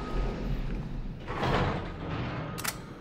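Elevator doors slide open with a rumble.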